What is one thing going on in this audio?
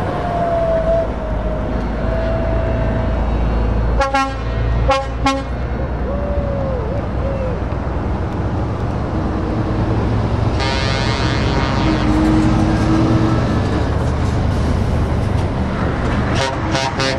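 A large truck engine rumbles steadily as the truck drives slowly closer.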